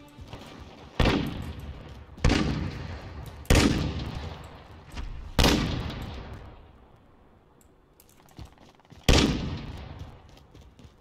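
Heavy gunshots boom and echo one after another.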